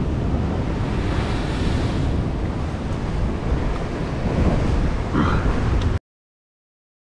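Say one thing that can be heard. Waves crash and splash against rocks below.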